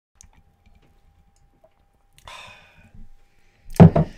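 A man slurps a drink close to a microphone.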